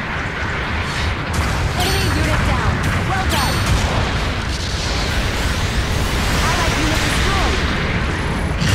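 A large machine rumbles and clanks as it moves.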